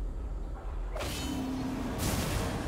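Magic spell effects whoosh and burst in a game.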